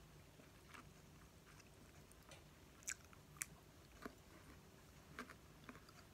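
A woman crunches on cucumber close to a microphone.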